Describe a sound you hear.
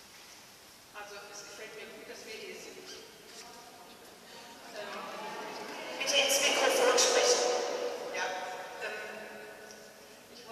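An elderly woman speaks calmly through a microphone in a large echoing hall.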